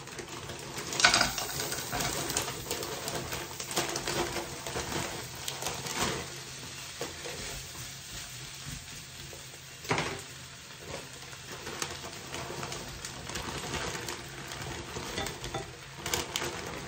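Food pours out of a bag into a pan.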